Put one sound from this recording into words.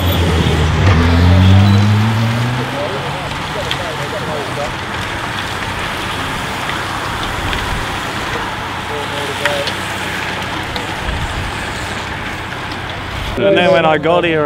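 Bicycles whir past in a fast-moving pack.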